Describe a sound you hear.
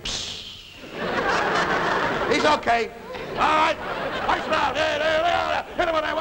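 A man makes loud, animated vocal noises and shouts close by.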